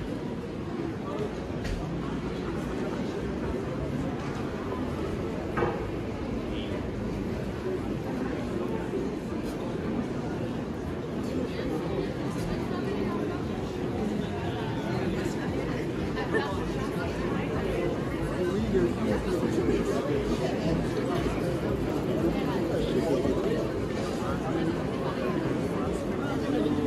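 A crowd chatters steadily outdoors in a busy street.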